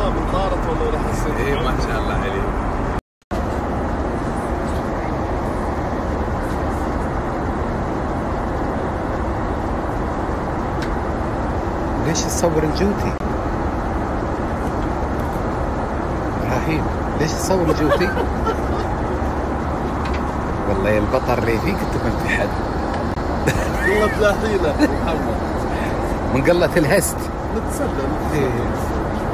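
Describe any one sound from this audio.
A man talks nearby in a relaxed voice.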